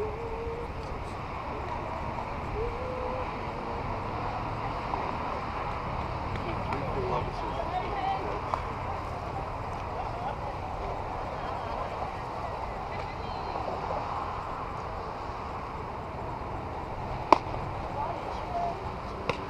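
Young women call out and chatter across an open field outdoors.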